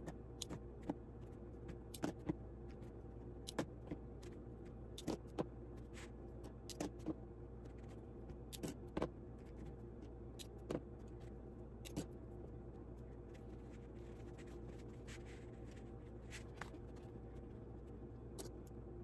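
Fabric rustles and slides on a table.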